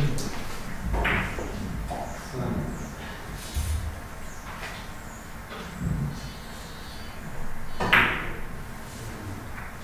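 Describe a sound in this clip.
Billiard balls click softly as they are set down on the table.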